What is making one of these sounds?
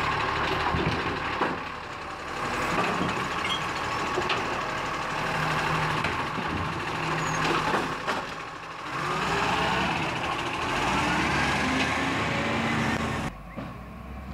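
A garbage truck's engine rumbles loudly close by.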